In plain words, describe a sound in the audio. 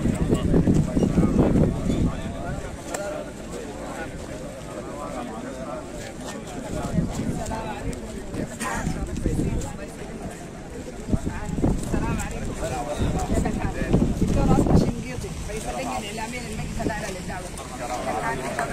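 Several men talk and greet each other nearby, outdoors.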